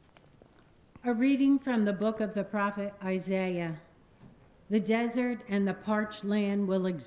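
An elderly woman reads aloud clearly through a microphone in a large echoing hall.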